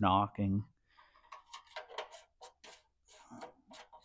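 Metal parts clink and tap.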